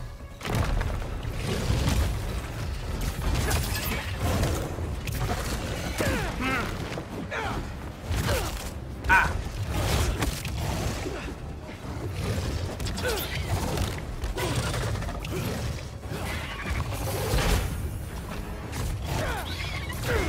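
Punches and kicks thud against a creature.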